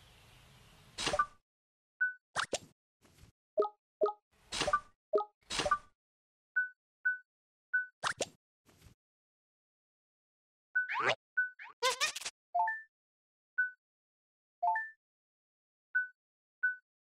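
Short electronic menu blips chime again and again.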